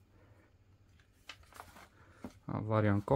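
Magazine pages rustle as they are turned.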